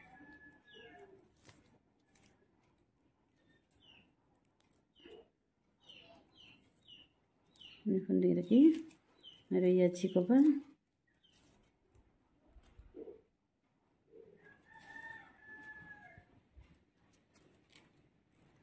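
Plastic strips rustle and tick softly as they are woven.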